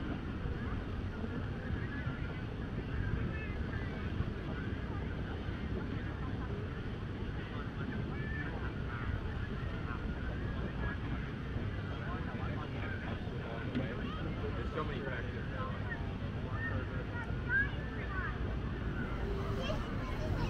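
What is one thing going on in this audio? A crowd of people chat and murmur outdoors.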